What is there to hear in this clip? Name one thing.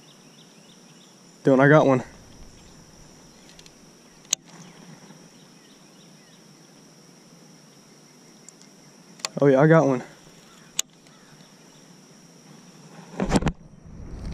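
A fishing reel clicks as it is handled.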